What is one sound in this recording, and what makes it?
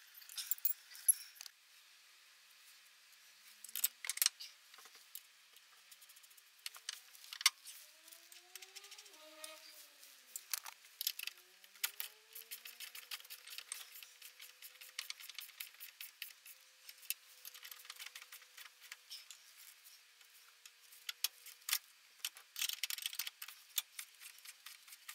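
Metal tools clink and tap against car parts.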